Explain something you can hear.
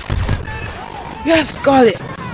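A walker machine fires its guns with loud zaps.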